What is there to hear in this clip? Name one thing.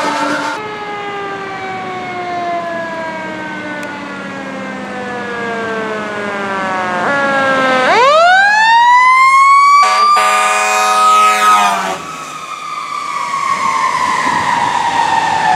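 A fire engine's siren wails, falling and rising in pitch.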